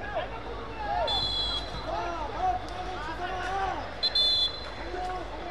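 A referee's whistle blows sharply twice.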